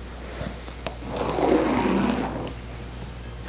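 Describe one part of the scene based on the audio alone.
A marker scrapes along paper.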